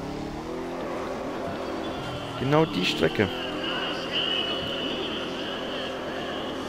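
A V8 muscle car engine revs hard while drifting.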